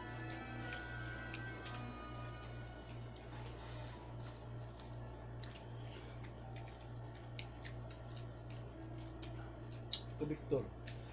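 A man chews and slurps food noisily up close.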